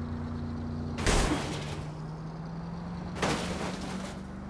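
A car crashes hard into another vehicle with a loud bang.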